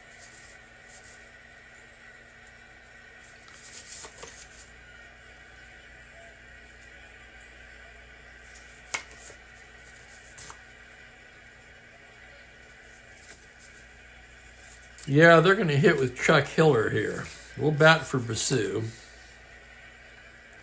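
Paper cards slide and rustle on a table.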